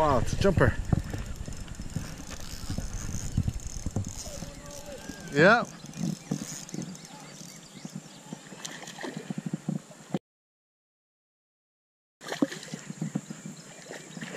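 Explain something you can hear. A spinning reel whirs as fishing line is reeled in.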